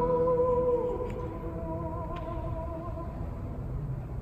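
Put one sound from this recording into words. A stringed instrument plays a last lingering note that rings and fades in a large echoing hall.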